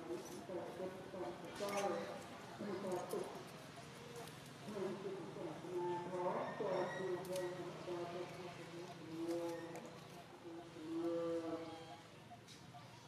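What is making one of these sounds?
A baby monkey whimpers and squeaks close by.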